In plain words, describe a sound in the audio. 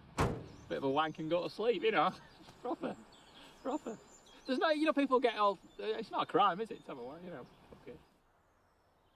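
A young man talks and laughs cheerfully close by.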